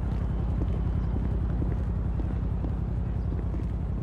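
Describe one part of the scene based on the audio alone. Footsteps climb concrete stairs.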